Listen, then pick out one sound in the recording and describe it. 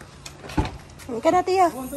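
A small child calls out in a high voice close by.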